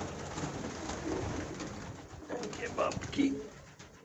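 A pigeon flaps its wings.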